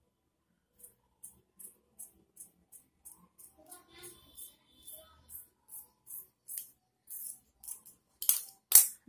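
Scissors snip steadily through cloth.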